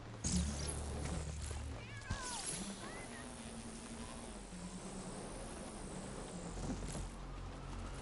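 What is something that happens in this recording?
Electric energy crackles and whooshes in bursts.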